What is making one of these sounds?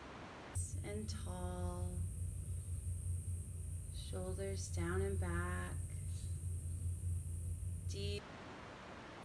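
A woman speaks calmly and slowly, close to the microphone.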